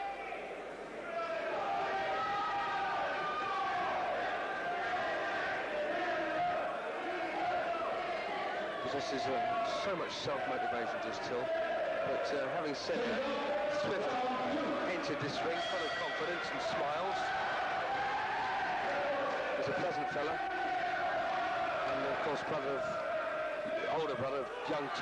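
A crowd murmurs around a boxing ring.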